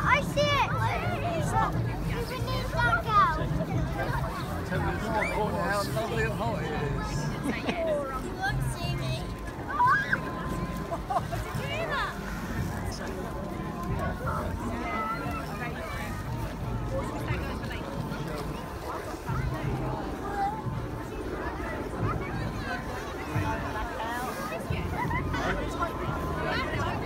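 A crowd of adults and children chatters outdoors nearby.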